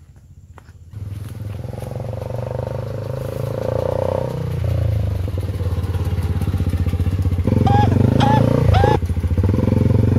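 A motorcycle approaches along a road with its engine growing louder.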